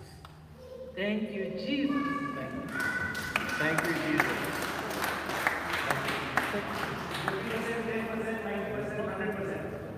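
A young man sings through a microphone in a large echoing hall.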